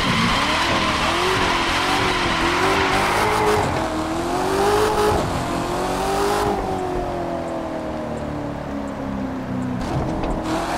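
A sports car engine roars and revs up and down.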